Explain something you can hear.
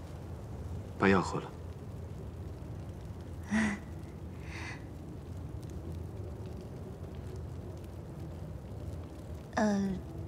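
A man speaks briefly in a calm voice.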